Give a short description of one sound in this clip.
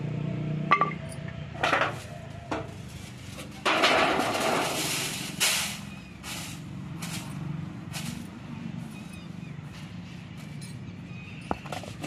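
Flour rustles and scrapes in a metal tray.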